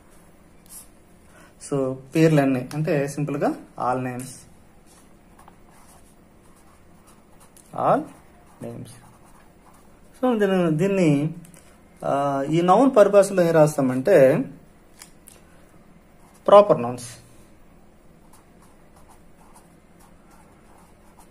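A marker pen scratches softly across paper.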